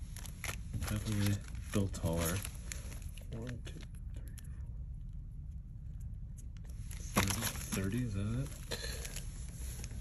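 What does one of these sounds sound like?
Foil card packs crinkle softly as they are handled.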